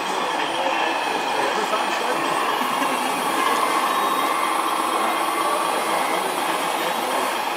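Loose soil spills from a digger bucket.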